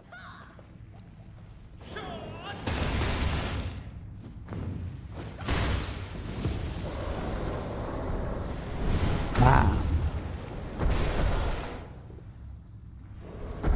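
Magic blasts crackle and boom.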